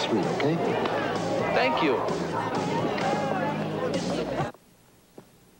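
A crowd of people chatters loudly.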